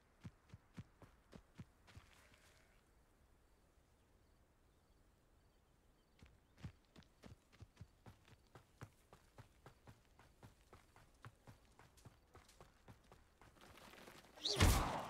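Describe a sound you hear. Footsteps tap quickly on a dirt path.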